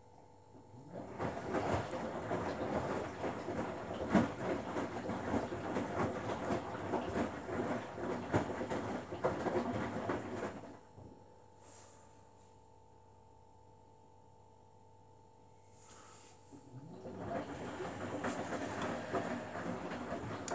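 A front-loading washing machine drum turns, tumbling wet laundry with soft thuds and sloshing.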